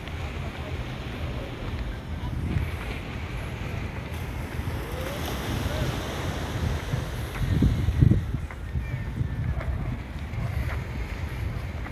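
Small waves lap softly at the shore.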